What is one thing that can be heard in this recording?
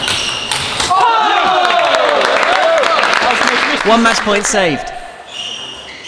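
Men cheer and shout nearby.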